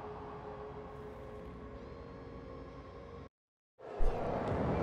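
A woman speaks firmly through a loudspeaker.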